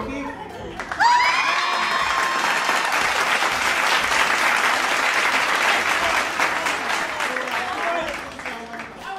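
A crowd of people cheers and screams loudly indoors.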